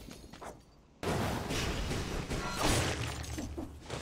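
A loud fiery explosion booms and roars.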